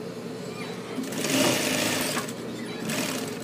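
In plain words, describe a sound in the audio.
A sewing machine whirs as it stitches fabric.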